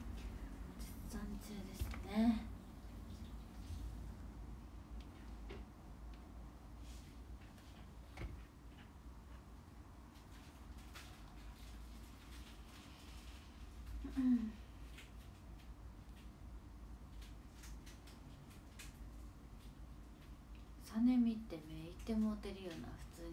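A young woman speaks briefly and quietly, close by.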